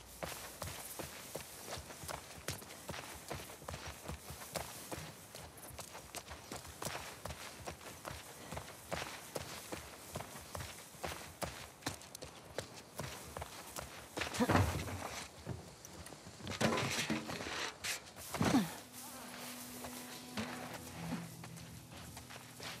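Footsteps run quickly over grass and pavement.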